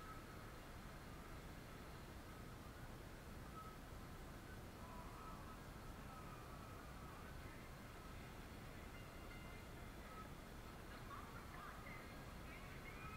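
Music plays faintly through a television speaker.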